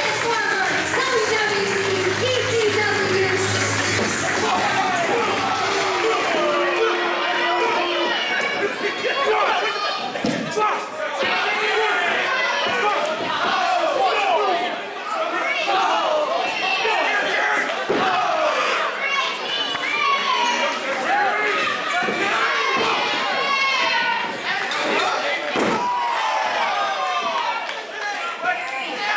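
A large indoor crowd cheers and shouts throughout, echoing in a big hall.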